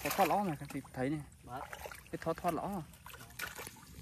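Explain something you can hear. Footsteps squelch through mud.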